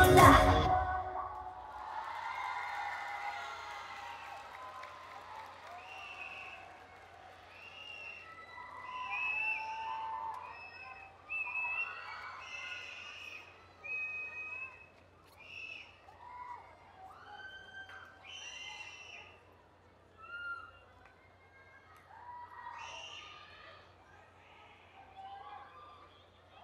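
Young women call out and cheer in high voices, heard from a distance.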